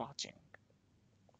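A man says a short word into a headset microphone.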